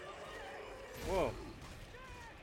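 A creature lets out a shrill, rising and falling screech.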